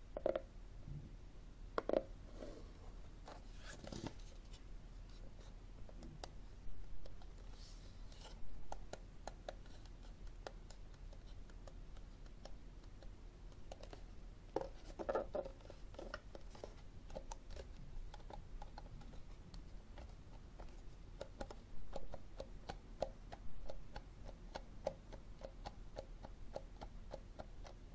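Fingers tap and click on a plastic case close by.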